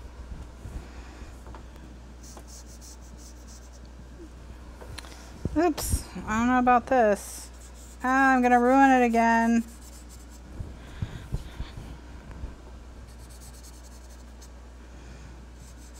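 Marker tips rub softly across paper.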